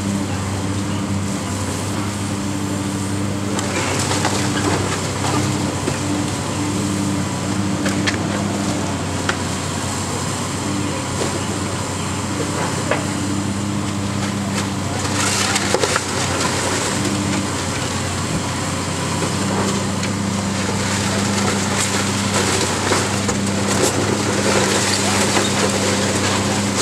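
A water hose sprays with a steady hiss.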